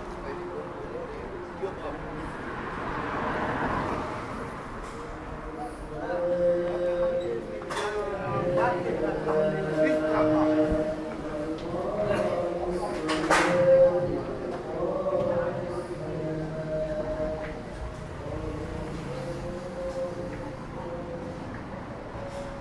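Traffic hums steadily along a street.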